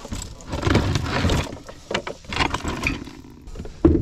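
A plastic cooler lid clatters as it is opened.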